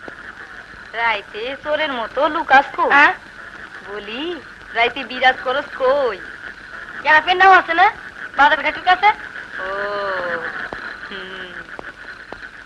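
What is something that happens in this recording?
A young woman sings softly nearby.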